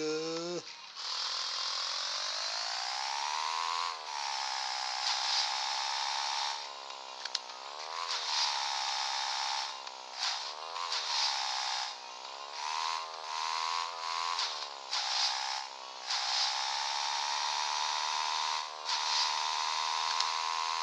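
A motorbike engine hums and revs up and down.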